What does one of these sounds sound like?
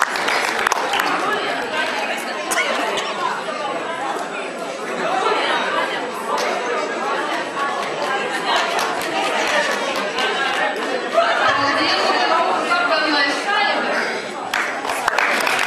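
A crowd of people chatter in the background.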